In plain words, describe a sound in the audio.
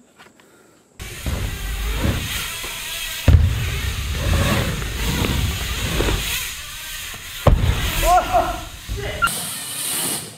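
Bicycle tyres rumble on a wooden ramp.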